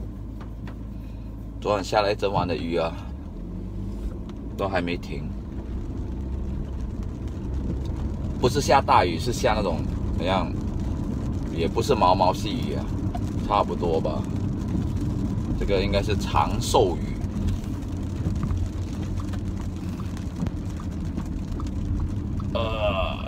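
A car engine hums low and steady inside a moving car.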